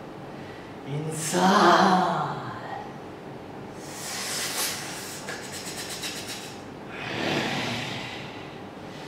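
A young man laughs.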